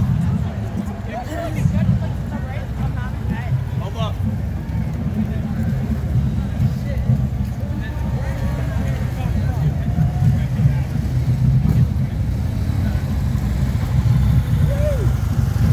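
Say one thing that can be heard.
Motorcycle engines rumble as they pass close by.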